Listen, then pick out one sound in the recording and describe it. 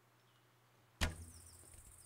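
A bowstring is released with a sharp twang.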